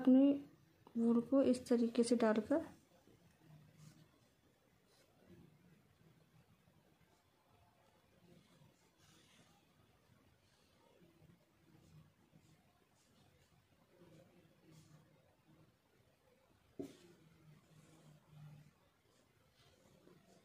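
Soft yarn rustles faintly as hands handle a knitted cap.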